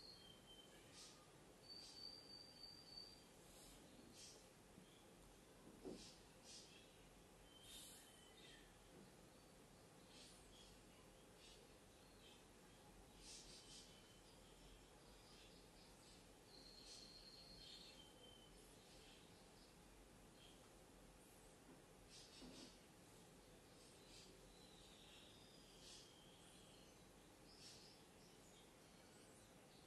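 An arcade game plays short electronic chimes and jingles, quietly.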